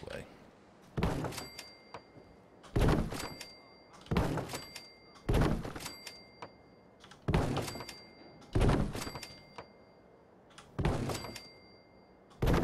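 Corrugated metal wall panels clank into place, one after another.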